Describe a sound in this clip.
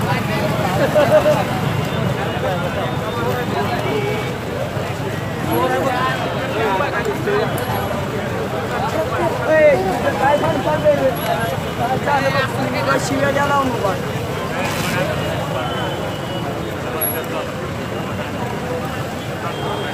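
A large crowd of men chants and shouts outdoors.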